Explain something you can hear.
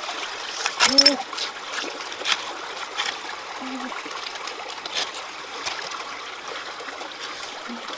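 Hands splash and dabble in shallow water.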